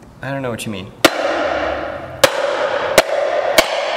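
A hammer strikes metal in sharp, ringing blows.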